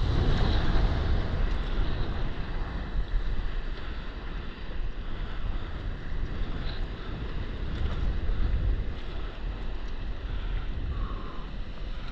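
Gentle waves lap and slosh on open water.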